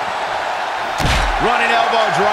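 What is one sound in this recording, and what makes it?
A heavy body thuds onto a wrestling mat.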